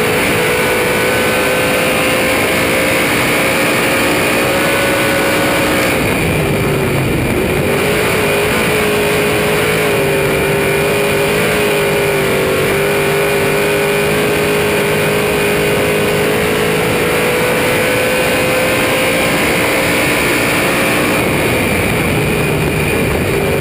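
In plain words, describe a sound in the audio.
Wind rushes past the open car.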